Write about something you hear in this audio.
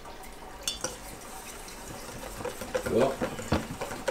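A spoon clinks against a metal bowl while stirring.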